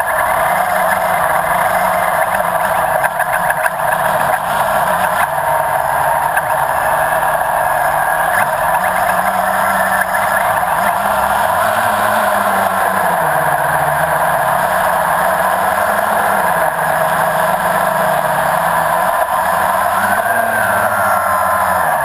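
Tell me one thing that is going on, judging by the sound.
The propellers of a small drone buzz loudly and steadily up close.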